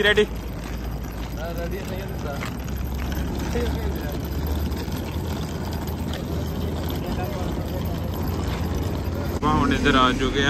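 A suitcase's wheels rumble over pavement.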